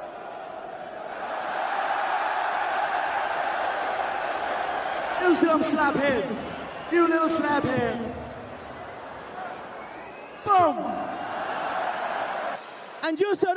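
A crowd cheers and roars.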